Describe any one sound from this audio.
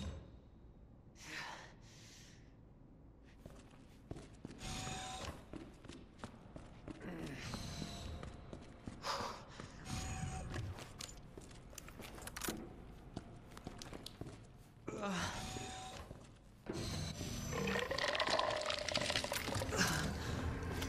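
Heavy footsteps tread slowly across a hard floor.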